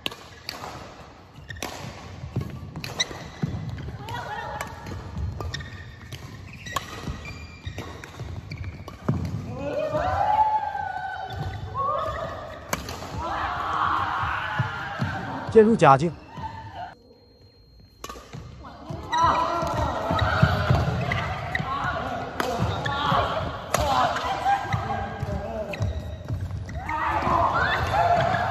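Badminton rackets hit a shuttlecock back and forth in a large echoing hall.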